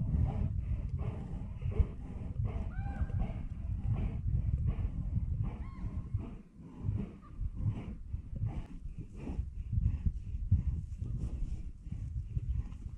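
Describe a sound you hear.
A bear rustles through grass and undergrowth up close.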